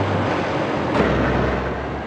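A loud thump and crash sounds as a truck clips a roadside sign.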